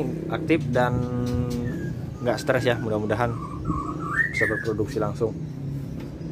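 A songbird sings with varied, gliding whistles close by.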